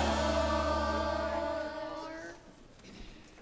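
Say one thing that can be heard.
A children's choir sings together in a room with a slight echo.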